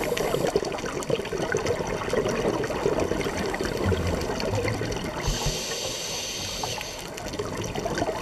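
Exhaled bubbles from scuba divers' regulators gurgle and crackle underwater.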